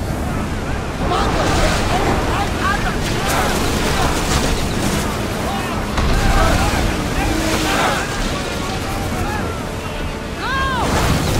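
A crowd of men shout in battle.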